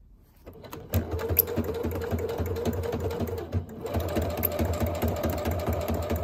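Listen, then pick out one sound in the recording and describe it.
A sewing machine stitches with a fast, steady whirring rattle.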